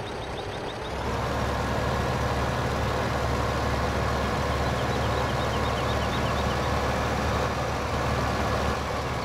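A tractor engine rumbles steadily.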